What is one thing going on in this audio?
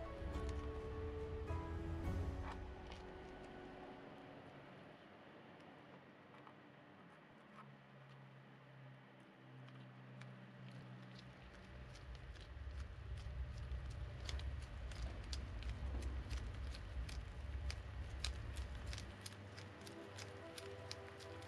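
Gloved fingers press and dab soft paste, making faint crinkling and tapping.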